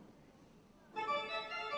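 A pipe organ begins to play loudly.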